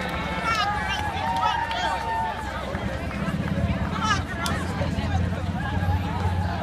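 A crowd of runners and onlookers chatter and cheer outdoors.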